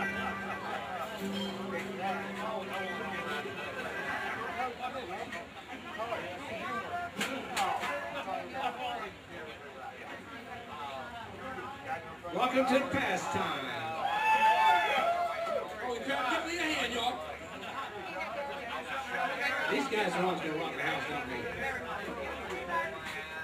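Men talk with each other close by.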